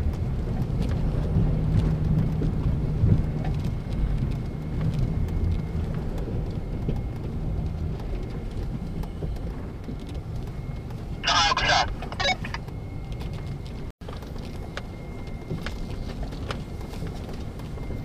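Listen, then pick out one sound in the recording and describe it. Tyres crunch and rattle over gravel.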